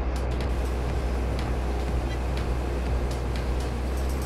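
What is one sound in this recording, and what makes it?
A pressure washer hisses as it sprays water.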